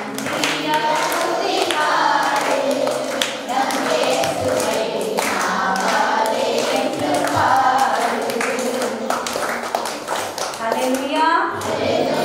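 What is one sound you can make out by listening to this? Children clap their hands in rhythm.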